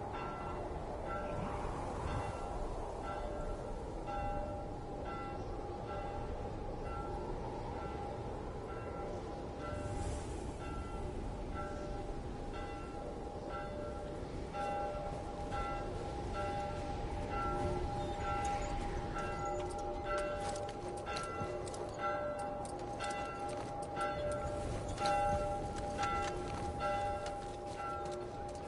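Wind howls steadily outdoors in a snowstorm.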